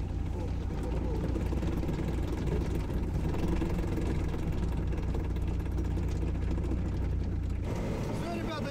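A heavy vehicle's engine rumbles steadily nearby.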